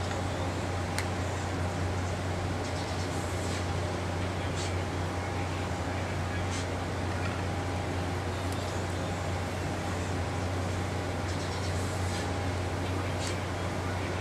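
A ceiling fan hums steadily.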